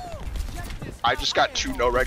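An energy weapon fires with crackling electric zaps.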